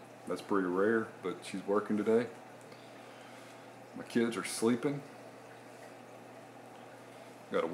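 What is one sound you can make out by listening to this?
An aquarium pump hums steadily and quietly.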